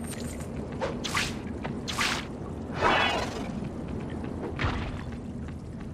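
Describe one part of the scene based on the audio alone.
Whooshing swipes and hits sound during a fight.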